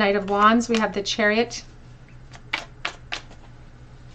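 A card slides and taps softly onto a table.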